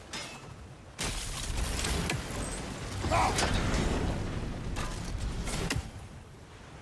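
A wooden structure crashes and rumbles as debris falls.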